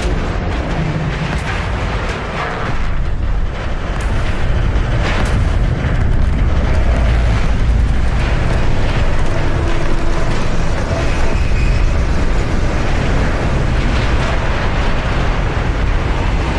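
Stormy waves roar and crash.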